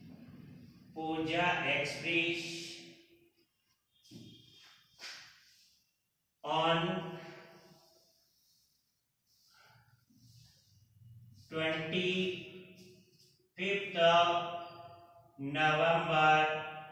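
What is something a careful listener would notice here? A man speaks slowly and clearly nearby, as if dictating.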